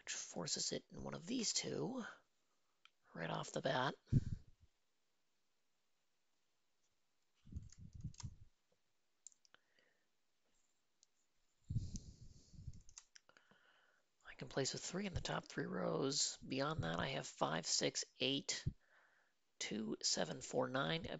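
A young man talks calmly and thoughtfully into a close microphone, with pauses.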